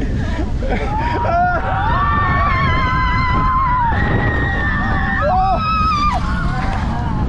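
A man shouts with excitement close by.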